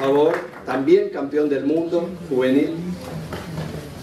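An elderly man speaks into a microphone.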